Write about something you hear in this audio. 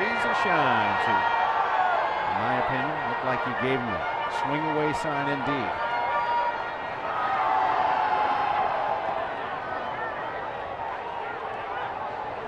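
A large crowd murmurs steadily in an open-air stadium.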